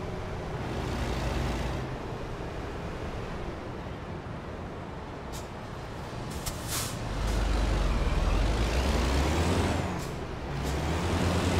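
A heavy truck engine rumbles steadily while driving.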